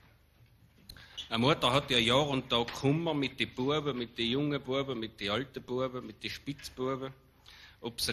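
A man speaks calmly into a microphone, reading out.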